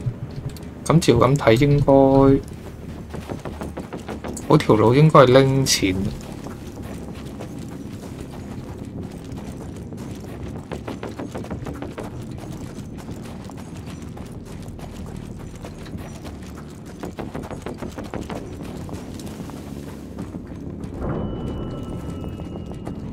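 Footsteps crunch steadily over snow and gravel.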